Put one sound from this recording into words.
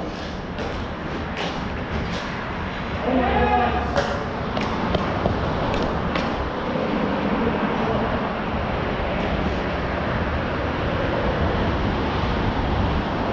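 Skate wheels roll and scrape steadily on a hard rink floor.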